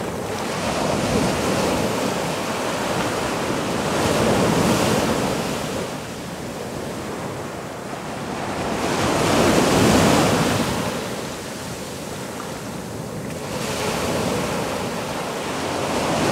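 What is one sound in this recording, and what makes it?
Waves wash up onto a beach in repeated surges.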